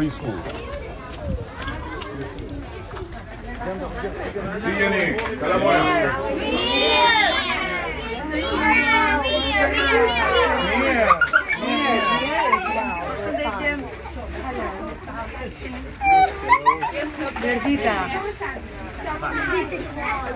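A lively crowd of adults and children talks and calls out close by.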